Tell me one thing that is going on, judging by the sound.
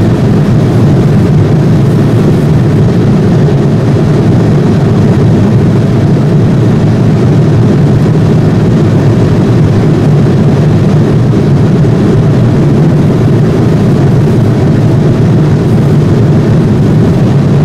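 A jet airliner's engines roar in a steady, low drone.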